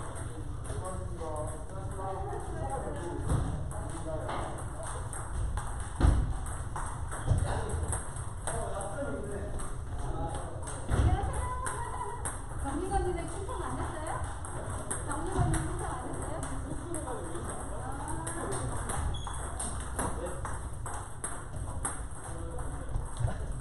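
Men and women talk and call out across a large hall.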